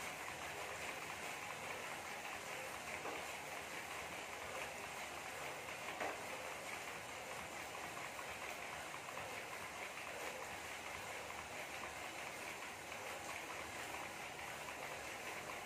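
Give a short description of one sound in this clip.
A bicycle trainer whirs steadily as a rider pedals.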